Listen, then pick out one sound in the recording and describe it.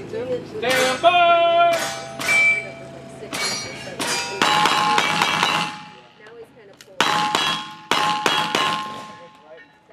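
Bullets strike steel targets with a ringing clang.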